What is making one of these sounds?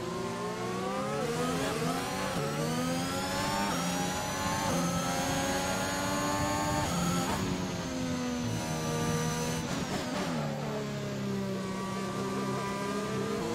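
A racing car engine screams at high revs, climbing through the gears and dropping as it slows for a bend.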